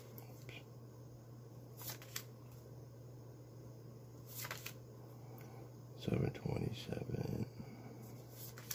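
Plastic banknotes crinkle softly as fingers count through them.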